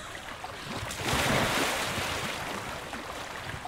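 A loud splash rushes up as the swimmer breaks the water surface.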